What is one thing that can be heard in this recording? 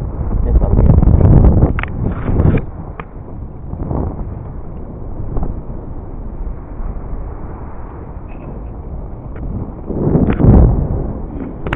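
Wind buffets the microphone in gusts outdoors.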